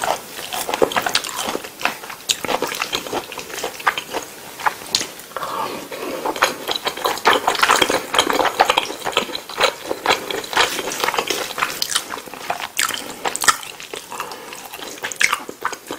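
Chopsticks and a knife clink and scrape against a plate.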